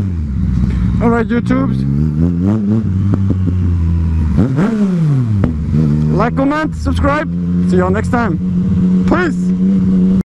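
A motorcycle engine revs up and down in quick bursts.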